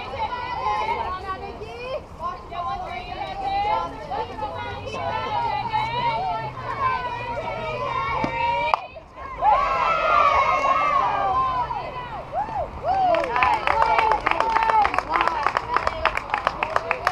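Young women cheer and chant loudly nearby.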